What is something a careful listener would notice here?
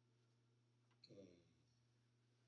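An elderly man speaks a brief word through a clip-on microphone.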